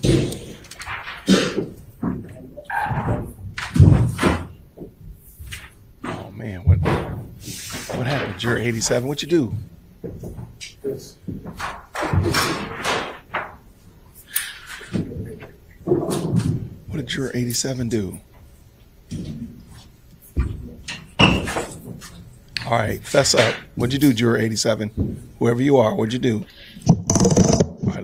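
A man talks quietly nearby.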